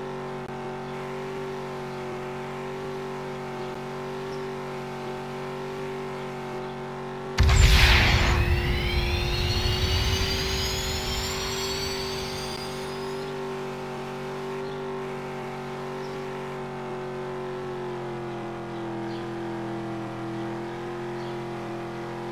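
A car engine hums steadily at high speed.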